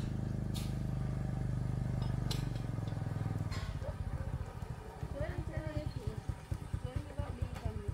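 A motor scooter approaches and draws near.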